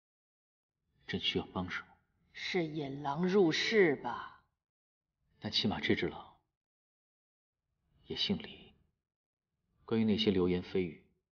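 A middle-aged woman speaks calmly and questioningly, close by.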